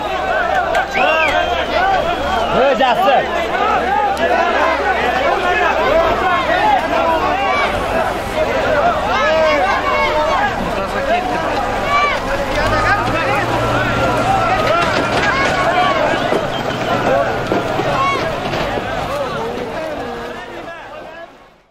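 A large crowd of men shouts and calls out loudly outdoors.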